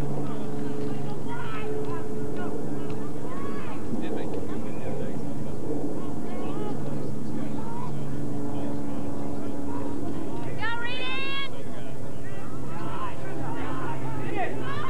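Football players shout and call out in the distance outdoors.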